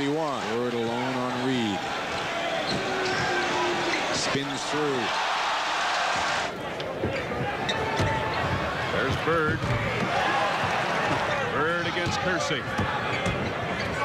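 A large crowd cheers and murmurs in an echoing arena.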